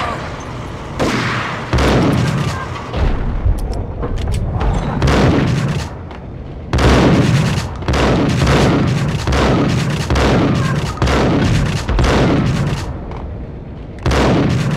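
Gunshots boom loudly, one after another, each followed by a ringing echo.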